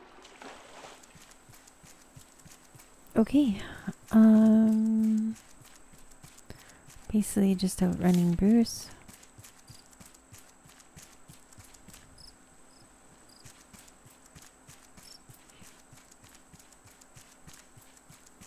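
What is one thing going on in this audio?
Footsteps tread softly over grass.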